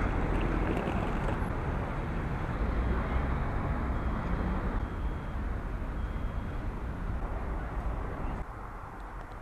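Traffic rumbles past on a city street outdoors.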